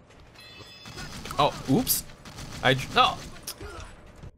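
Gunshots ring out loudly in quick bursts.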